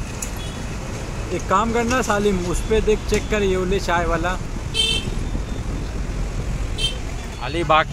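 Motorbike engines hum in passing street traffic.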